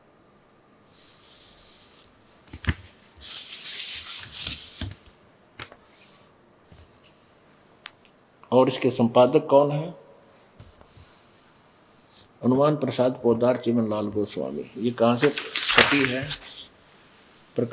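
Paper pages rustle and flip as a book is handled.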